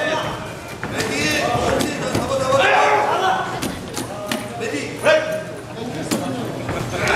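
Boxing gloves thud against a boxer's body and gloves.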